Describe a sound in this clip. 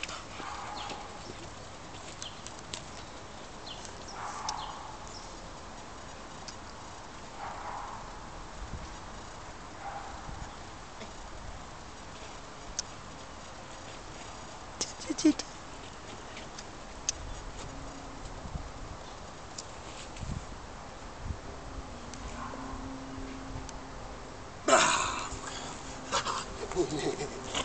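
A man gives short spoken commands to a dog outdoors.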